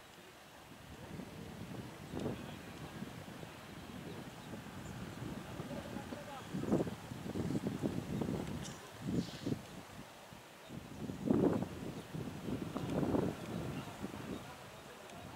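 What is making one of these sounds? Men talk and call out at a distance outdoors.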